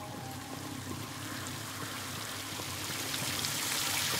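Rain falls steadily, growing louder toward the end.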